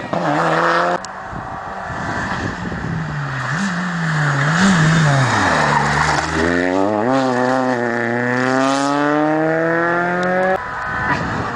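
A second rally car engine roars and revs as the car approaches and passes close by.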